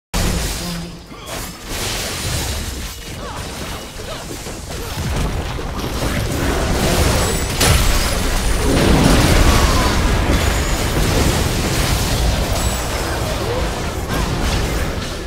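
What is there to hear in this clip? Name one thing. Magic spells whoosh, blast and crackle in a fast video game battle.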